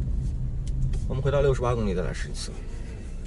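A middle-aged man speaks briefly and calmly nearby.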